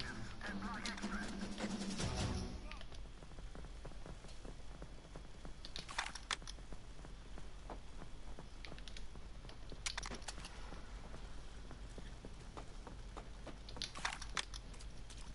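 Gunshots ring out in short bursts.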